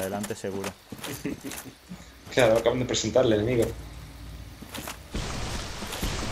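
Footsteps crunch over the forest floor with a clink of armour.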